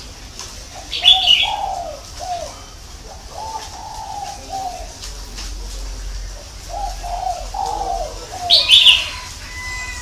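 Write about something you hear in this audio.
A caged bird gives loud, sharp high chirps now and then.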